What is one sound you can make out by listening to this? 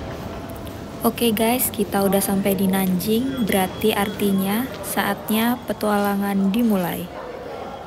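A woman speaks close by.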